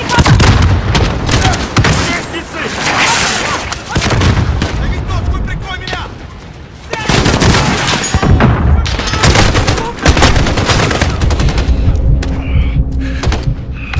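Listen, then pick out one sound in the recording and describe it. A rifle fires in rapid bursts, with loud echoing cracks.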